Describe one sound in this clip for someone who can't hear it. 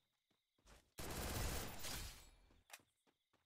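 A gun fires in a quick burst.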